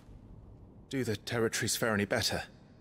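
A young man asks a question calmly.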